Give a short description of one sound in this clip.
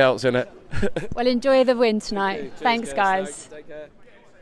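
A young woman laughs and speaks close to a microphone.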